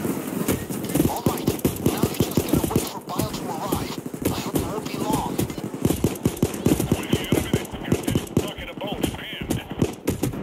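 A gun fires in rapid bursts of shots.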